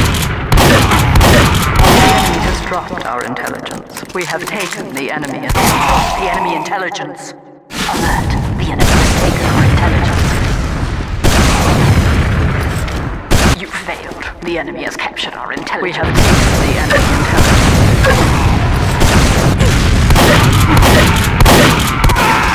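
A shotgun fires in short, loud blasts.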